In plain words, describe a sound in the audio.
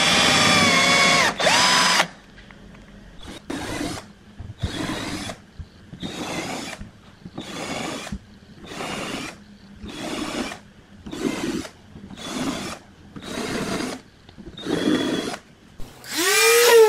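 A cordless drill whirs as it bores into wood.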